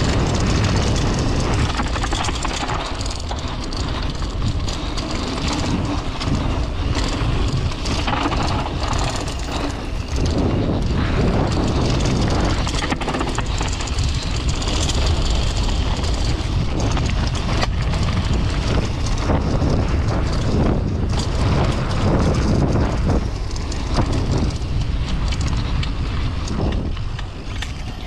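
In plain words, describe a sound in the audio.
Bicycle tyres roll fast over a dirt and gravel trail.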